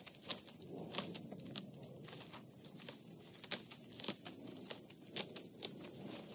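Picked fruit drops with soft thuds into a woven basket.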